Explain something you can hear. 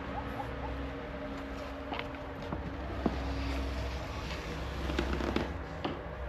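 A wooden door creaks as it swings open.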